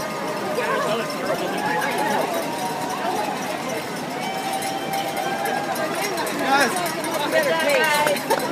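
Many runners' footsteps patter on pavement.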